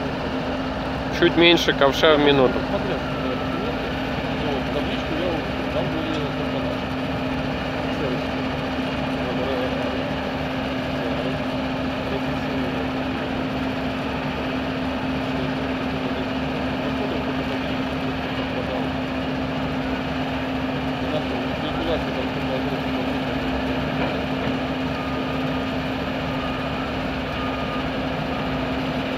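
A heavy machine engine drones steadily outdoors.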